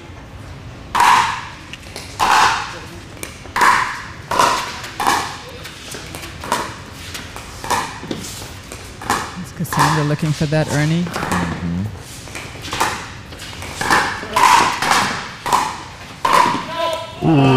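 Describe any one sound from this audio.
Paddles pop sharply against a plastic ball in a quick back-and-forth rally.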